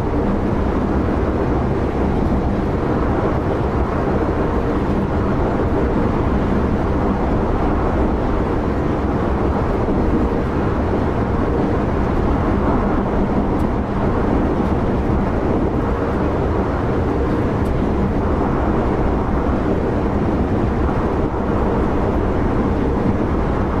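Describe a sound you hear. A train's motor hums steadily.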